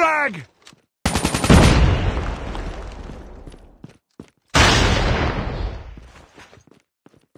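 A rifle fires a rapid burst that echoes away.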